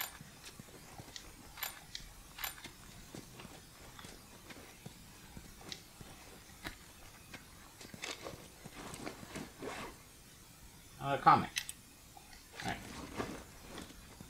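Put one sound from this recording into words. Footsteps tread softly on a hard floor.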